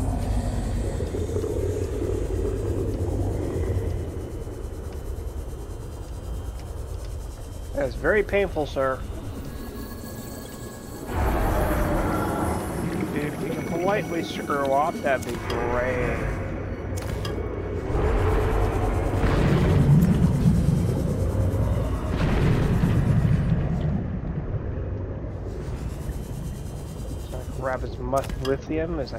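A small underwater vehicle's engine hums and whirs steadily.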